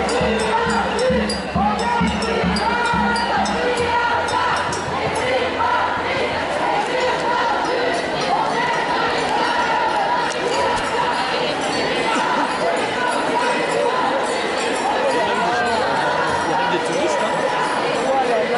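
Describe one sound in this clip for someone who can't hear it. A large crowd of women chants and sings loudly outdoors.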